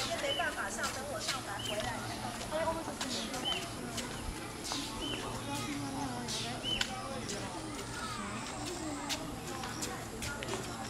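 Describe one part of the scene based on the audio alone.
Adults and children chatter nearby outdoors.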